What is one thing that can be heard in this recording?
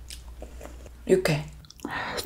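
A young woman chews food wetly, very close.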